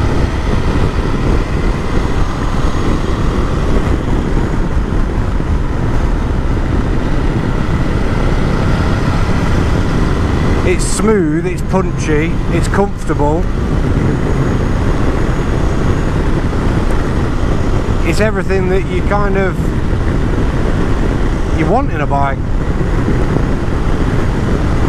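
Wind roars steadily past a moving motorcycle.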